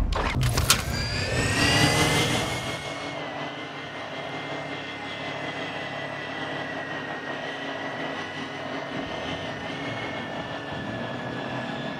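A small drone whirs with a steady high hum.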